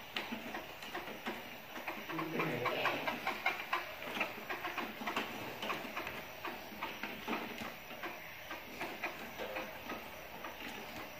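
A caged bird chirps repeatedly.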